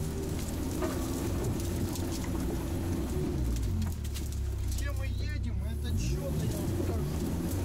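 Branches scrape and crack against the vehicle's body.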